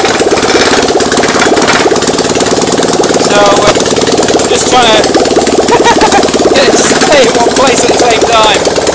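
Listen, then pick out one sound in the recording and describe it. A motorcycle engine runs loudly with a fast, rattling beat.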